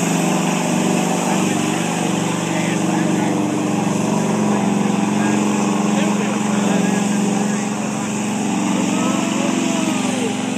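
A truck engine roars loudly as it churns through mud.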